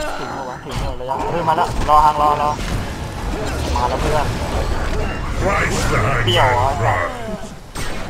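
Magic spells burst and crackle in a fierce fight.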